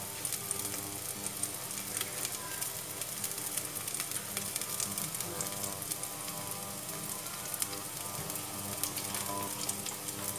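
Water bubbles and simmers steadily in a pot.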